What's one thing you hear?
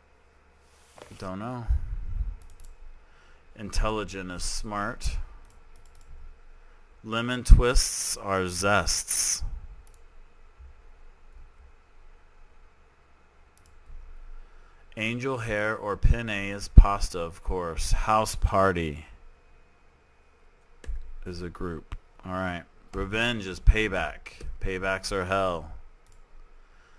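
A man talks calmly and thinks aloud close to a microphone, in bursts with pauses.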